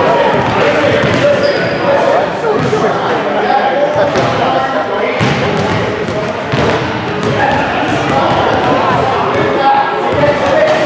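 A crowd of people chatters in a large echoing gym.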